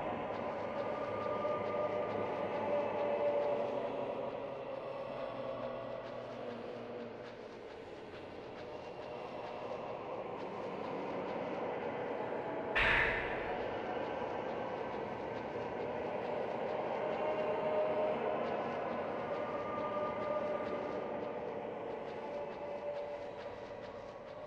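Soft footsteps tread slowly across a wooden floor.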